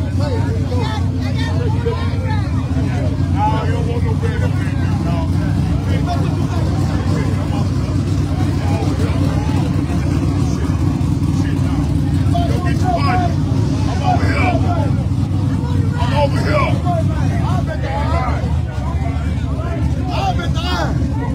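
A car engine rumbles loudly and revs.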